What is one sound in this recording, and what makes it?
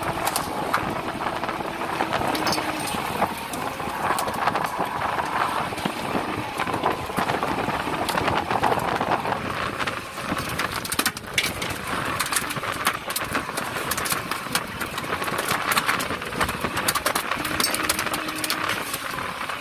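A winch whirs as it hauls in a line.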